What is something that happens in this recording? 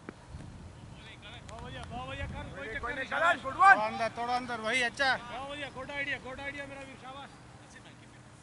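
Several men shout and cheer outdoors from a short distance.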